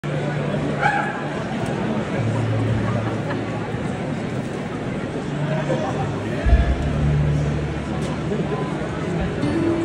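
An acoustic guitar is strummed, heard through a loudspeaker.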